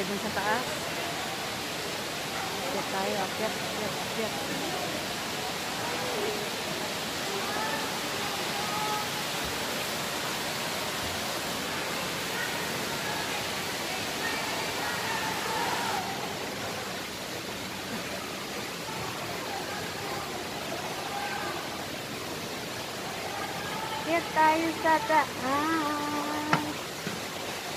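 A woman talks calmly close by, outdoors.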